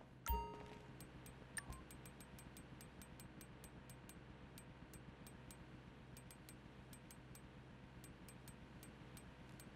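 A game menu ticks with short, quick clicks.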